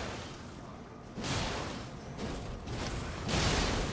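Swords clash and ring in quick blows.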